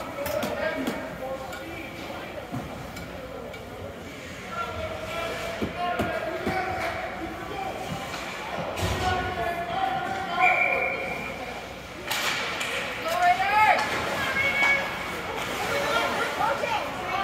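A crowd of spectators chatters and shouts nearby.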